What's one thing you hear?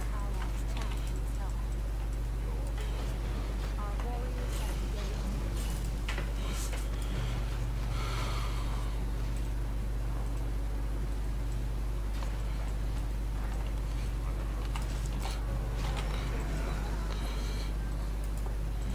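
A young man speaks calmly, close to a microphone.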